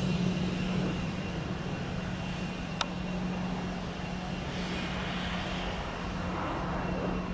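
A jet engine whines and roars steadily as an airliner taxis close by.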